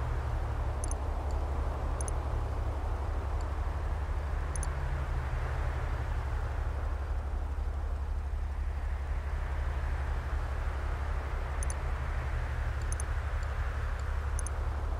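Short, soft electronic clicks sound as buttons are pressed.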